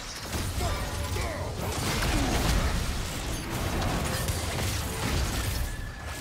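Magic blasts crackle and whoosh during a fight.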